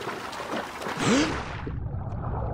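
A swimmer dives under the water with a splash.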